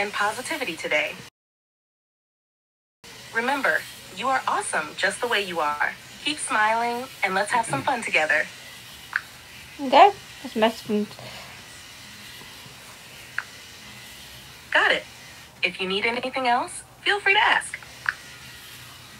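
A middle-aged woman talks calmly and close by.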